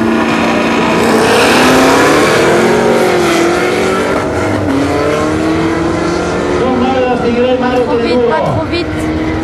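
Race cars launch and roar away, fading into the distance.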